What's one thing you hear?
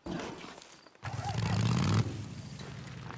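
A motorcycle engine starts and revs loudly.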